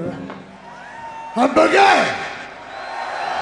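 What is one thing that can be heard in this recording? A man shouts loudly into a microphone, echoing through loudspeakers in a large open space.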